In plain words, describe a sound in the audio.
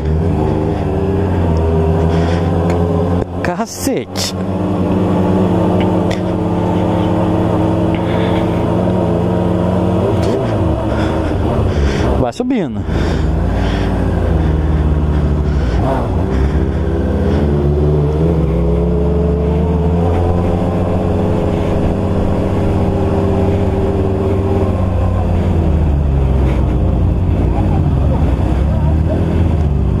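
A motorcycle engine hums steadily up close, rising and falling in pitch.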